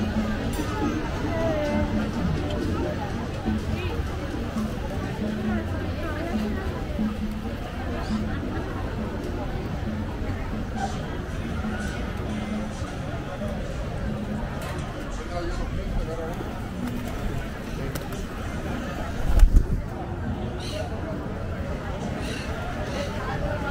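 A crowd of people chatters outdoors all around.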